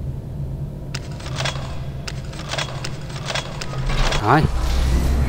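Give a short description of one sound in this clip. Buttons click one after another as they are pressed.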